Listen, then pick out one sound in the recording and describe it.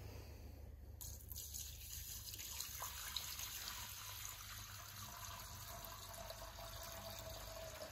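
Liquid pours and splashes into a metal tank.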